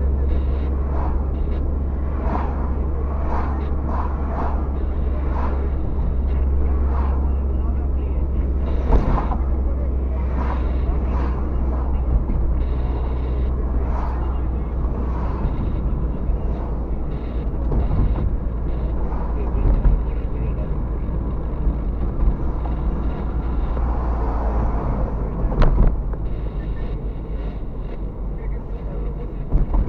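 Road noise and a low engine drone fill the inside of a car driving on asphalt.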